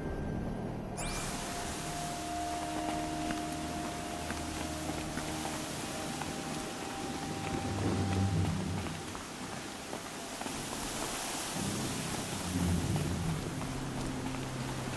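Strong wind roars and hisses through a sandstorm.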